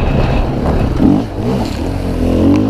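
Muddy water splashes up from a tyre.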